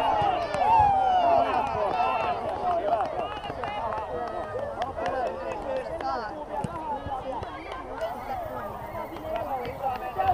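Children shout and call out across an open outdoor pitch.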